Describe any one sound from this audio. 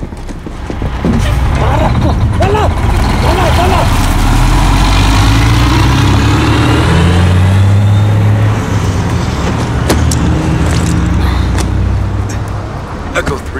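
A heavy truck engine rumbles and roars as it drives past.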